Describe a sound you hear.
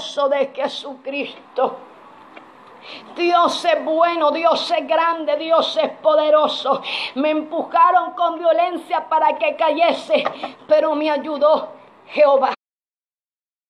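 A young woman sings with passion, close by.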